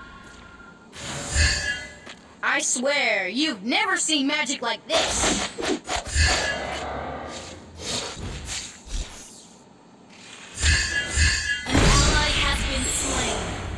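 Magic blasts whoosh and crash in quick bursts.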